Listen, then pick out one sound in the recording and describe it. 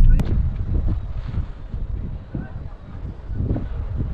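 Prayer flags flap and snap in the wind.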